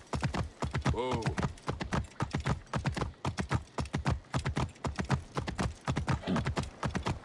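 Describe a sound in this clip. Hooves clop rapidly on stone as a horse gallops.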